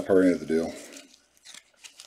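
A foil trading card pack crinkles as it is torn open.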